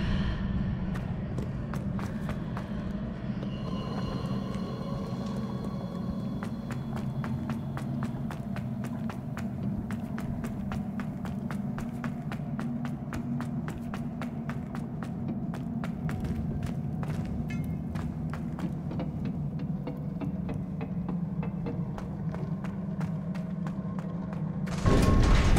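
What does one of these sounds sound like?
Footsteps tap quickly on a hard stone floor.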